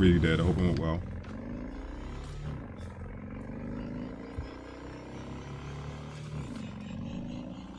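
A motorcycle engine hums and revs.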